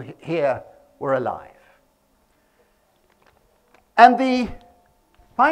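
A middle-aged man speaks calmly into a clip-on microphone, pausing between phrases.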